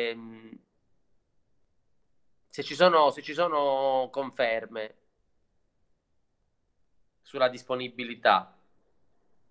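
A middle-aged man speaks calmly and close through an online call, with pauses.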